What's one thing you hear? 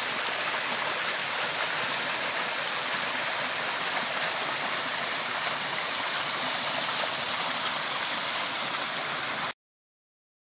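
A stream rushes and splashes over rocks close by.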